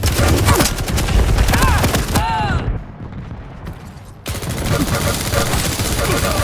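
Rapid electronic gunfire crackles.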